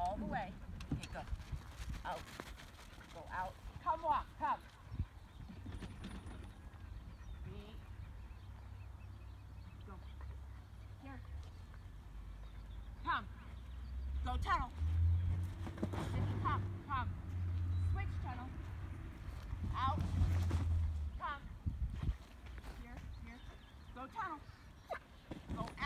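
A young woman calls out to a dog with animation, some distance away outdoors.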